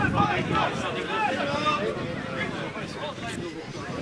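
Spectators nearby chatter and murmur.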